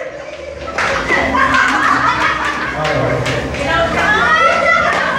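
Several women laugh and shriek loudly in a room.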